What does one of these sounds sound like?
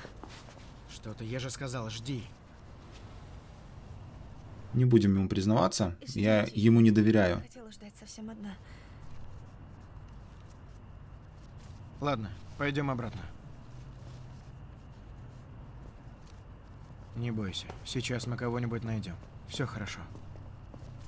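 A man speaks quietly and firmly nearby.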